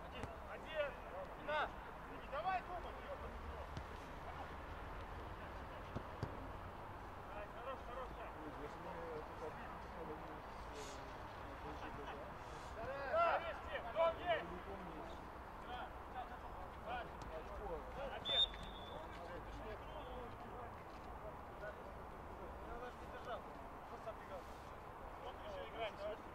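Young men shout to each other across an open field, heard from a distance.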